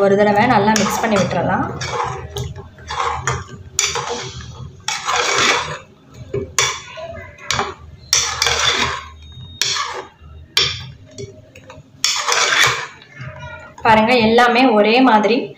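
A metal spoon scrapes and clinks against a pot.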